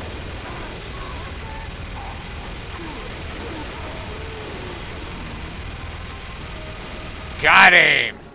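A heavy machine gun fires rapidly.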